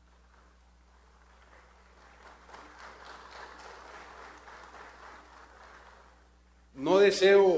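An audience applauds across a large hall.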